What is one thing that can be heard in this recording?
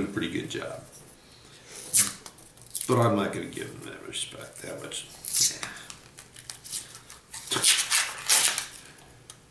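Paper crinkles and tears as a coin roll is unwrapped.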